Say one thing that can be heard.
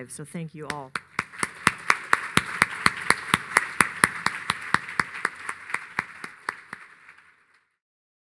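A middle-aged woman claps her hands in a steady rhythm.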